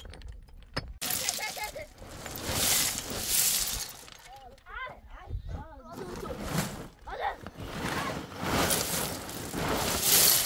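Loose rubble pours and rattles onto a pile.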